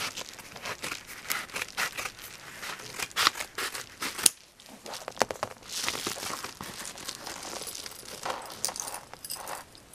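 Hands tear open a padded paper envelope.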